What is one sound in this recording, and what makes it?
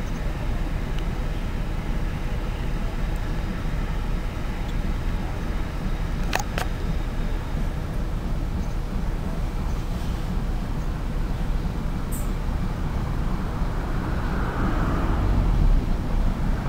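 Wind rumbles across an open space outdoors.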